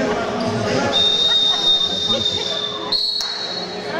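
A referee blows a long, shrill whistle.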